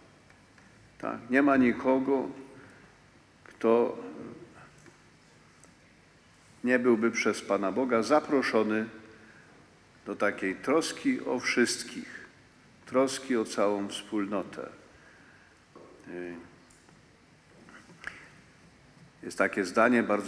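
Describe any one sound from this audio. An elderly man speaks slowly and solemnly into a microphone, in phrases with pauses, in a reverberant hall.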